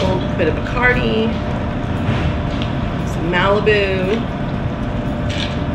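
Liquid pours from a bottle over ice.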